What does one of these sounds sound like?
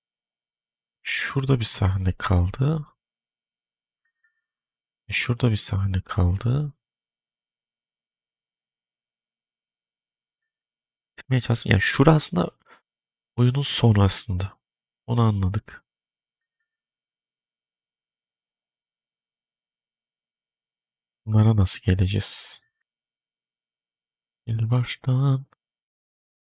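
A man speaks in short bursts into a close microphone, with pauses between.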